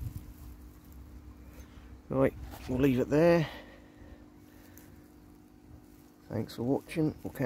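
Leaves rustle softly as a hand brushes through them.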